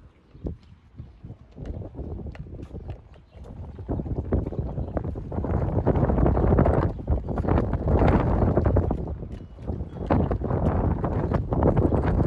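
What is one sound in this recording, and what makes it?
Footsteps thud on a wooden footbridge.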